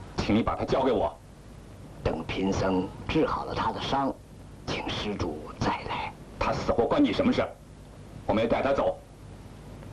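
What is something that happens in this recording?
A man speaks loudly and demandingly.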